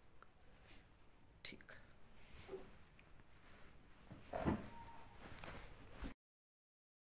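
A middle-aged woman speaks softly close by.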